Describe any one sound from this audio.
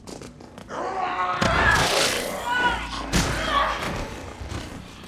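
Heavy thuds and scuffles of a struggle ring out.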